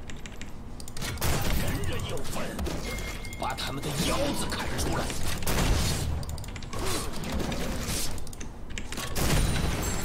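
Magic blasts and weapon hits crackle and thud in a fast game battle.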